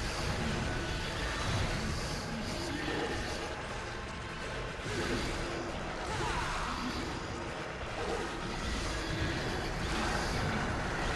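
A dark magical energy roars and swirls steadily.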